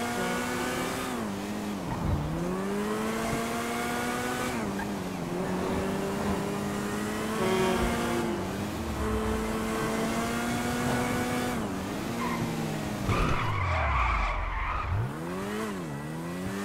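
A small engine revs and drops as it shifts through gears.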